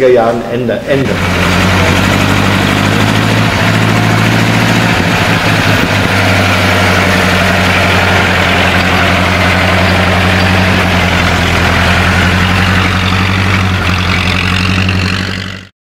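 An old car engine chugs steadily as the car drives slowly.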